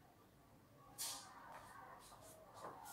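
Clothing and paper rustle close by as someone moves past.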